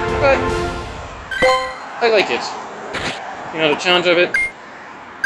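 A game plays short electronic chimes and jingles.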